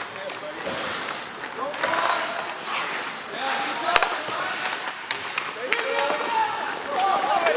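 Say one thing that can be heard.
Skates scrape and hiss across ice in a large echoing hall.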